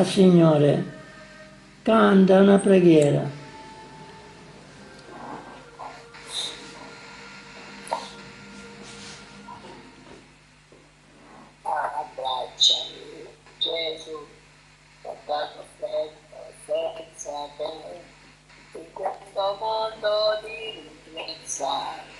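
An elderly man talks with animation through a small phone loudspeaker.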